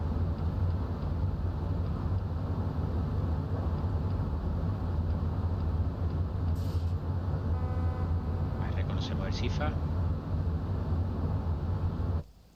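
A train engine hums with a steady low drone.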